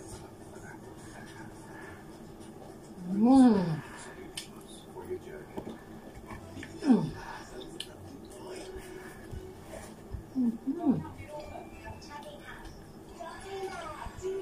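A woman chews food noisily.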